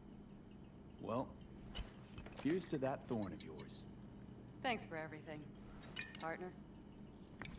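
A woman speaks calmly, heard through game audio.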